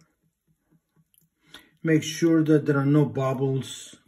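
Oil glugs as it pours from a bottle into a glass jar.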